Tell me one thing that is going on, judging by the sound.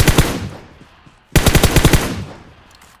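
An assault rifle fires rapid bursts in a video game.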